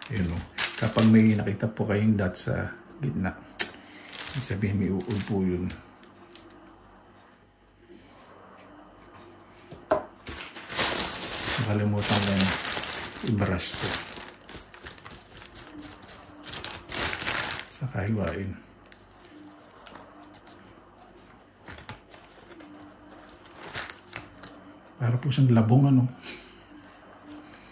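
A knife scrapes and peels a root.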